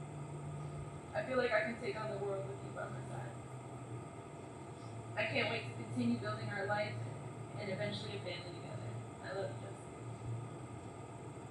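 A young woman speaks emotionally into a microphone outdoors.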